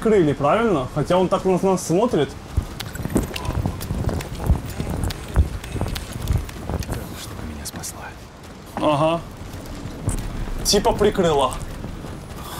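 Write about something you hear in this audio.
A man exclaims and talks with animation close by.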